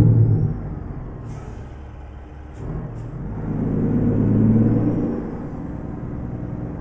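A truck engine rumbles low and steady, rising and falling in strength.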